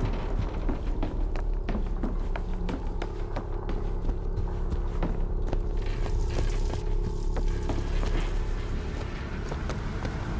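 Footsteps thud steadily on wooden stairs and a hard floor.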